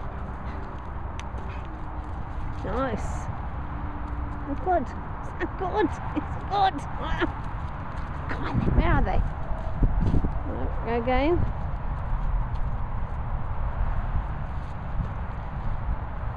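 A dog rolls and rustles on dry grass and leaves.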